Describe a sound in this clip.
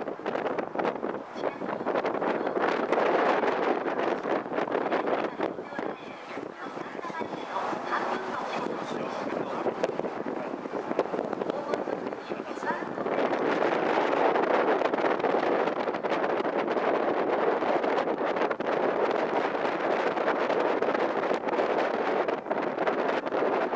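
Wind blows steadily outdoors over open water.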